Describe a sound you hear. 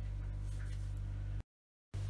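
A pen scratches lightly on paper.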